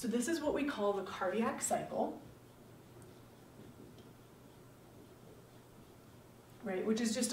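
A woman speaks calmly, lecturing.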